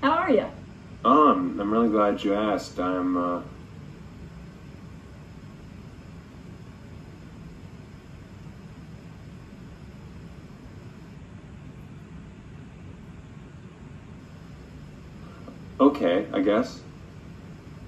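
A young man speaks into a phone.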